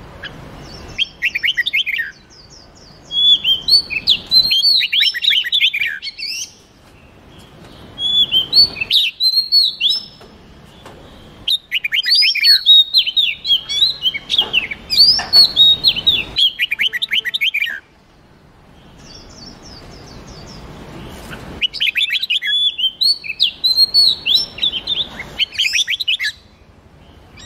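Songbirds sing loud, rapid whistling phrases in short bursts with pauses between.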